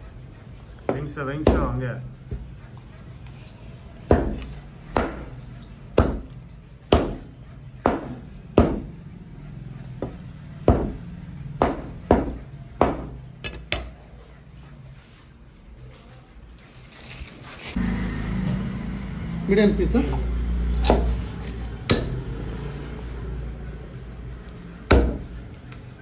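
A cleaver chops hard through meat and bone onto a wooden block, again and again.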